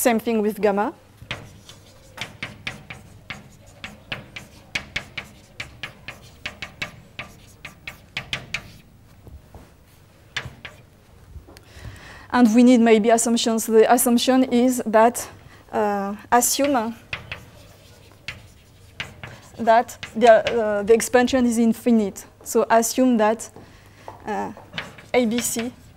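A woman lectures calmly into a microphone in a large hall.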